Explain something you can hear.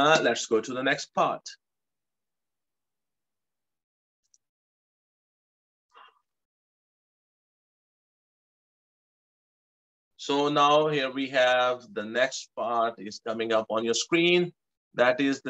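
A middle-aged man explains calmly into a microphone.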